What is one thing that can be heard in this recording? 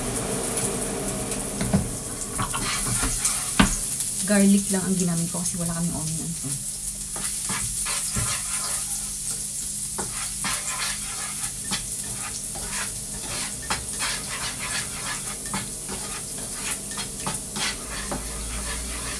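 Food sizzles in a frying pan.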